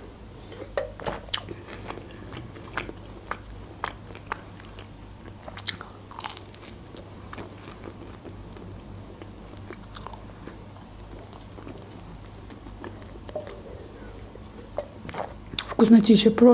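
A young woman chews crunchy food close to a microphone.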